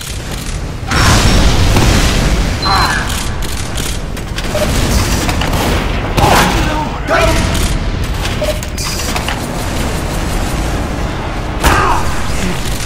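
Rockets fire and explode with loud booms.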